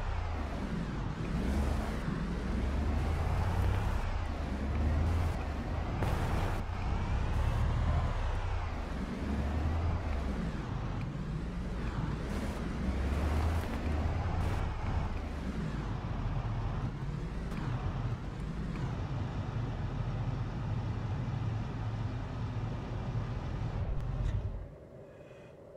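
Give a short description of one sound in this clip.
A van engine idles with a low, steady rumble.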